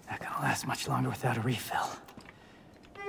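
A young man speaks quietly and wearily.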